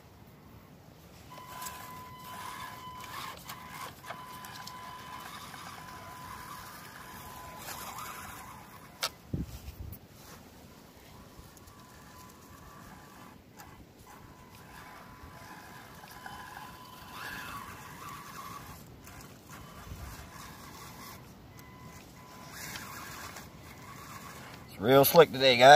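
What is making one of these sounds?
The electric motor of a radio-controlled scale truck whines as it crawls over dirt.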